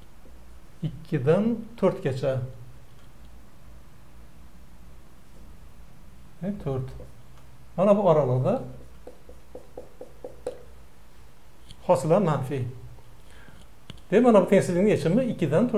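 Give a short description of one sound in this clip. An elderly man speaks calmly and clearly, with pauses, close to a microphone.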